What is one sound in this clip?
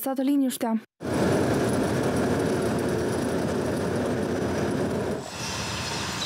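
A paving machine's engine rumbles steadily close by.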